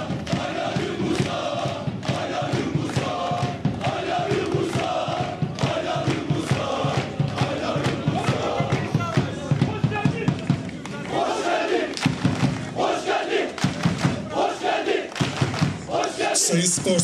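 A group of young men sing together outdoors.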